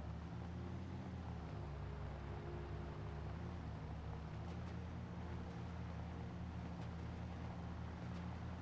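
An engine hums low and steady as an off-road vehicle drives.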